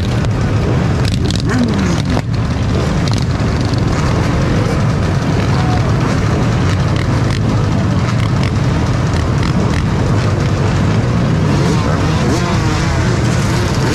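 Motorcycle engines rev up and down in a crowd.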